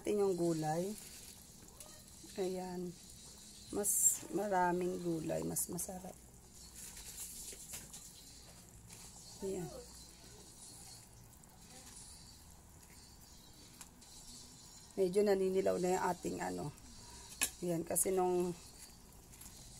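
Water bubbles and boils in a pot.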